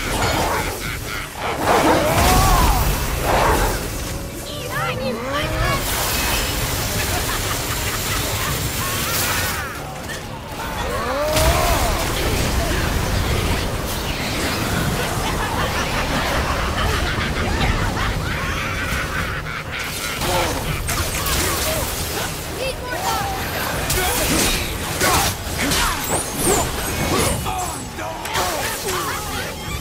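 Weapons clash and crackle with electric blasts.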